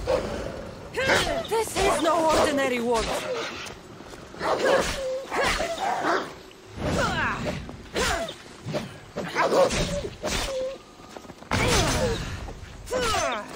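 Weapons swish and clash in a fast fight.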